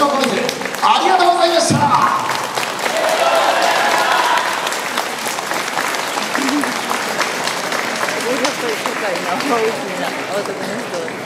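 A crowd of onlookers chatters outdoors.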